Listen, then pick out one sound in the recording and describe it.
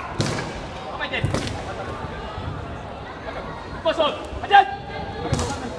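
Young fighters shout sharply in a large echoing hall.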